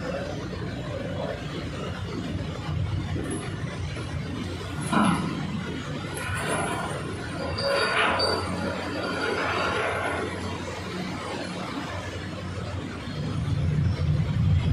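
Water churns and splashes against a hull.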